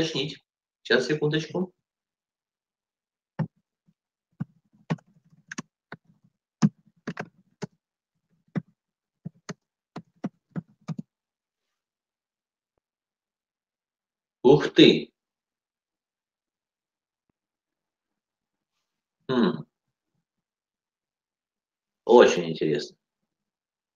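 A middle-aged man speaks calmly in short bursts, heard through an online call.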